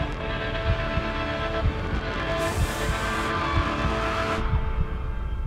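A man growls low and close.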